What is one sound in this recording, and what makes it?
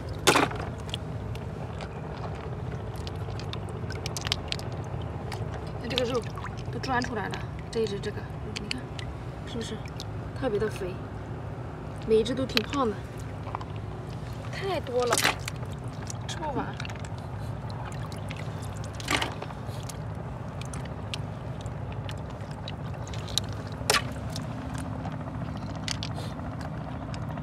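Water splashes and sloshes as hands stir through a shallow pool.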